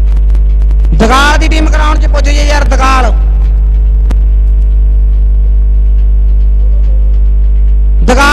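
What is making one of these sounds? A man calls out loudly over a loudspeaker.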